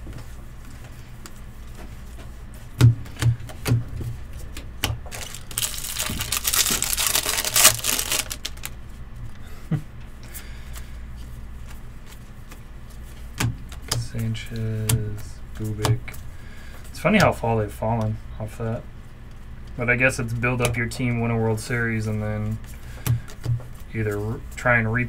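Trading cards flick and slide against each other.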